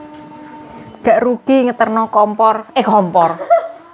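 A middle-aged woman sings loudly and with animation nearby, in a small echoing room.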